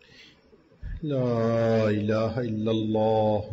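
An elderly man chants in a long, drawn-out voice through a microphone.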